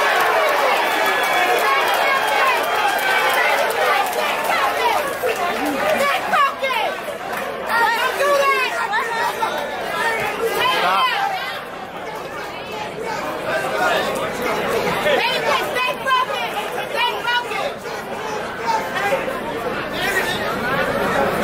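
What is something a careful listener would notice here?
A crowd talks and shouts.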